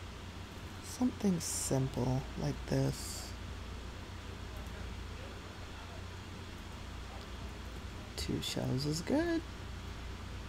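A young woman speaks casually into a headset microphone, close up.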